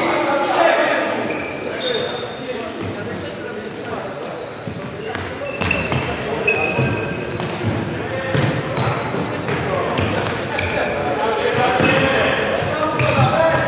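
A ball is kicked with dull thuds in a large echoing hall.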